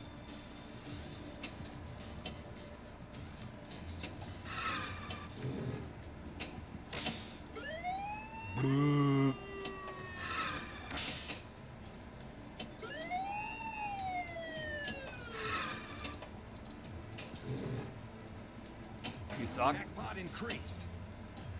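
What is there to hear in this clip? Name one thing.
Pinball flippers click and the ball knocks against bumpers.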